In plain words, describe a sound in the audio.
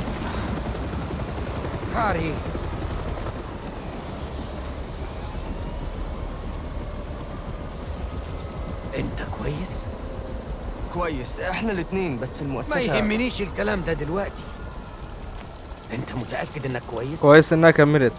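A helicopter's rotor thumps steadily.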